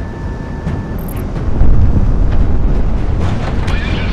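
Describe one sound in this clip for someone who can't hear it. An explosion booms in the air.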